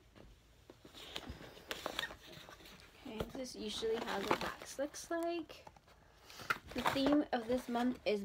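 Plastic packaging rustles and crinkles in hands.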